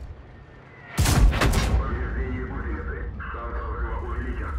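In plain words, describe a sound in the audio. A huge explosion booms and rumbles away.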